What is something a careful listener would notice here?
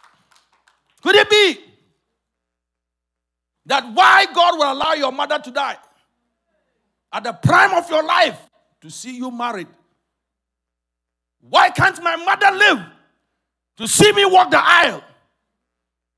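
A man speaks with animation into a microphone, in short loud bursts with pauses between them.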